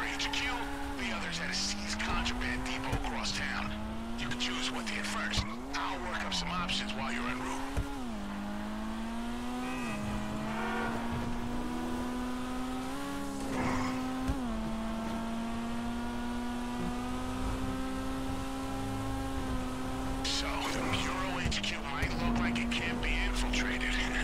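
A car engine revs hard, its pitch rising and dropping with each gear change.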